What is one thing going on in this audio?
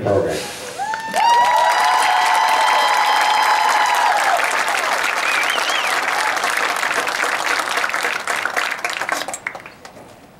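A marching band plays a loud held chord outdoors.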